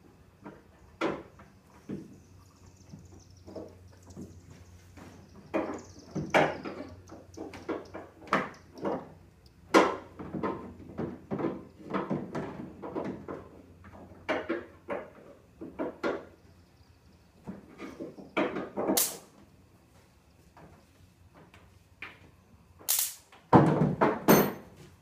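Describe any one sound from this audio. Things clank and knock against a pickup truck's bed a short distance away.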